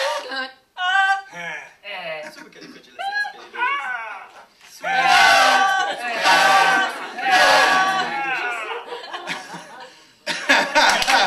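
A small mixed choir sings together.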